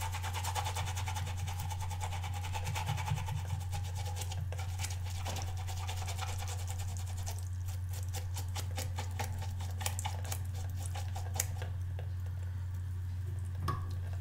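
Water trickles from a tap into a sink.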